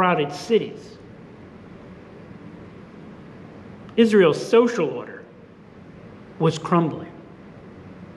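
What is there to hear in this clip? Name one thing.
An elderly man speaks calmly and slowly into a microphone, with pauses, in a slightly echoing room.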